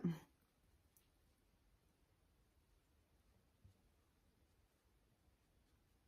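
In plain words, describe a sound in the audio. A makeup brush sweeps softly across skin.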